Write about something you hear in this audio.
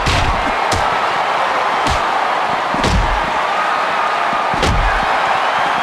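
Wrestlers thud onto a ring's canvas.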